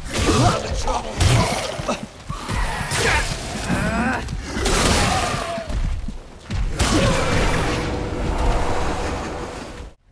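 Creatures snarl and growl.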